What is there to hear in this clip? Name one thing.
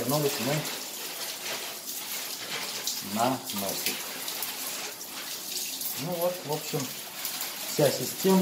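Water pours from a tap and splashes onto a hard floor.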